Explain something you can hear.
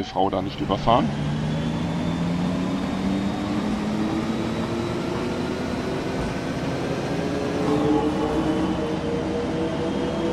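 A bus engine hums and rises in pitch as the bus speeds up.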